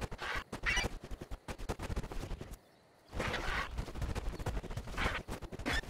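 A large bird flaps its wings heavily.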